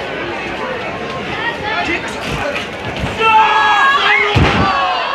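An outdoor crowd of men and women shouts and cheers.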